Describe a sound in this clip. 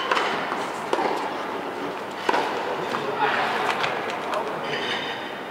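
Sneakers squeak and patter on a hard court.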